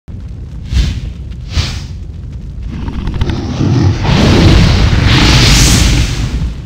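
Flames roar and whoosh, swelling louder toward the end.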